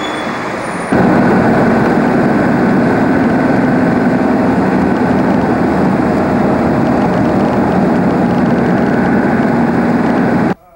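A car engine hums steadily with tyres rushing over the road.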